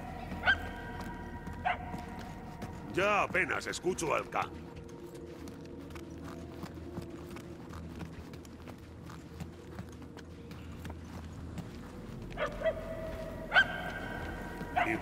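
Footsteps tread steadily on a hard floor.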